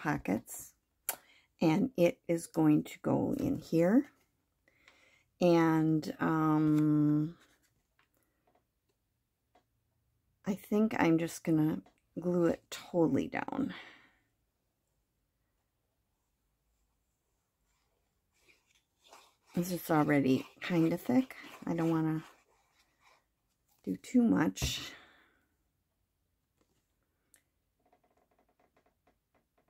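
A stiff card is handled and rustles against paper.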